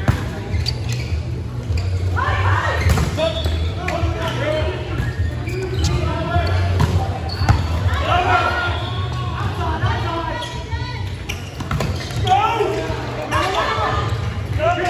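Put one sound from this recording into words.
A volleyball smacks off hands with sharp thuds.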